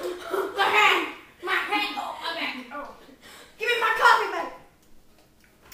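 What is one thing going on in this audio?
Young girls talk and laugh excitedly close by.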